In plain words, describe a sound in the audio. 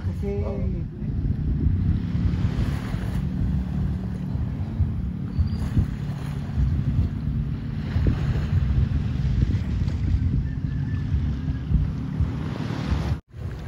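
Wind rumbles over the water outdoors.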